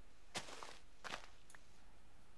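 Leaves rustle and crunch as they break apart.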